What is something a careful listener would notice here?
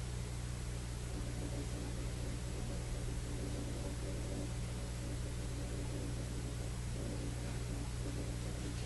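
A middle-aged woman snores softly close by.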